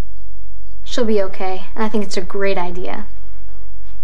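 A teenage girl speaks earnestly.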